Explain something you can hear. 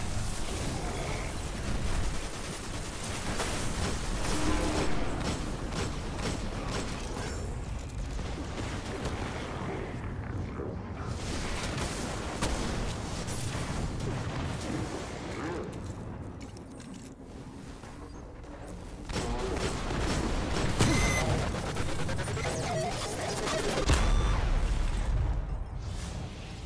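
Gunshots fire rapidly in a video game.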